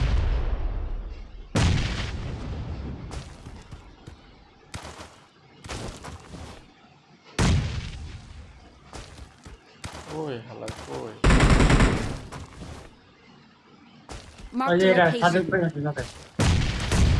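Heavy footsteps thud and scrape as a large creature runs, leaps and lands.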